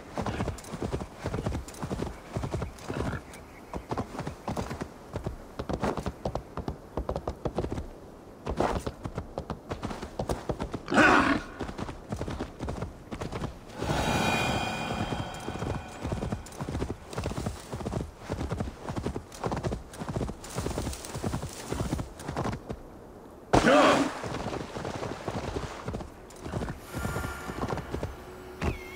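Hooves pound the ground at a steady gallop.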